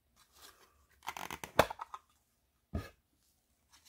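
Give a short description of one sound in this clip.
A plastic case slides open and clicks.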